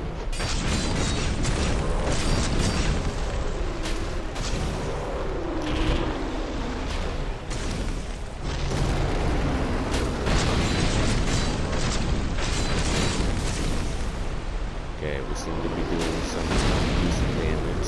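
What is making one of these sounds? Lava rumbles and crackles steadily.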